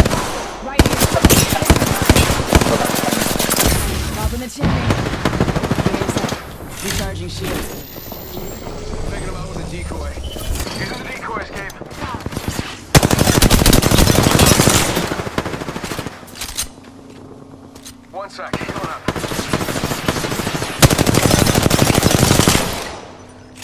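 An automatic gun fires rapid bursts of loud shots.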